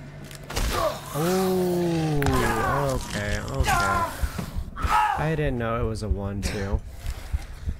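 A monster lets out deep, wailing groans.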